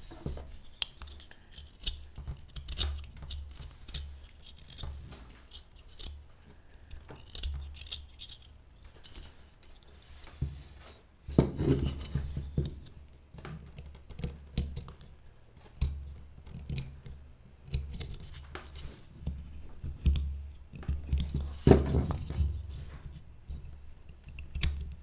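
A knife scrapes and shaves dry wood in short strokes, close by.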